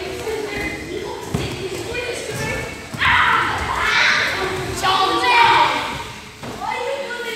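Children shout and squeal excitedly, echoing in a large hall.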